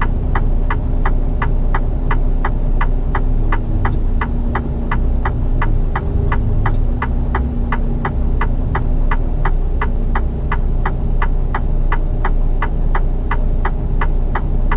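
A turn signal ticks quickly and evenly inside the cab.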